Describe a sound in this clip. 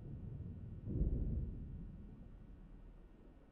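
A heavy body lands with a dull thud.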